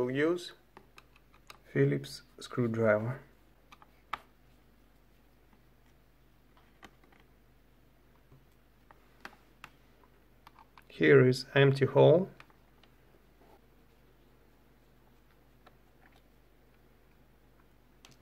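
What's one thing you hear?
A screwdriver turns small screws with faint scraping clicks.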